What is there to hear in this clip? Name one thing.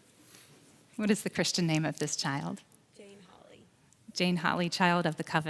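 A woman speaks warmly into a microphone in a large echoing room.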